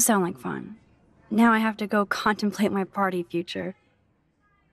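A young woman speaks calmly and closely.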